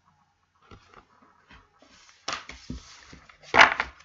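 Cards riffle and slap together as they are shuffled.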